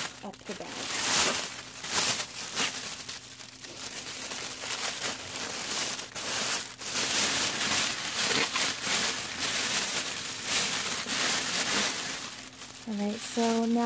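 Plastic wrap crinkles and rustles loudly.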